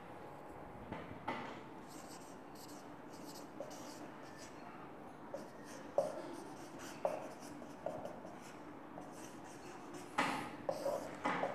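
A marker squeaks faintly on a whiteboard.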